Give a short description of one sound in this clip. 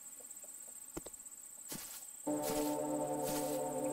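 Footsteps crunch over leaves and twigs.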